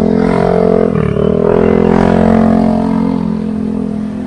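A scooter engine idles nearby.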